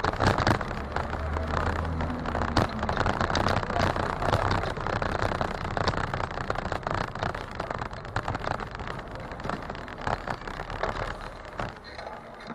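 A garbage truck's engine rumbles nearby.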